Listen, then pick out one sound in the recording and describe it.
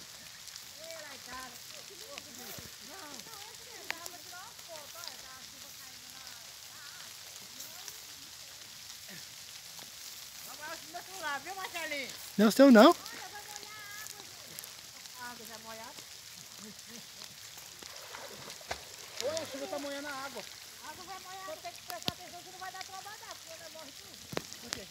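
Young people talk and shout to each other outdoors.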